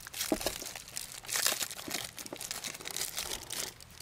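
A foil candy wrapper crinkles as it is torn open.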